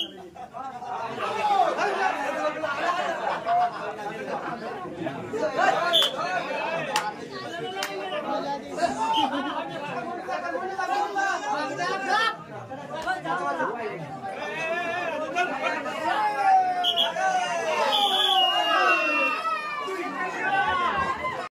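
A crowd of young men shouts and chants excitedly nearby.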